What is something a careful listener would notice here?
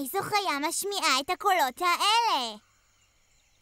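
A young girl speaks with animation, close and clear.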